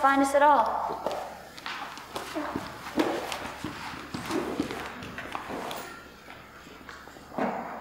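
Bare feet patter softly on a wooden floor.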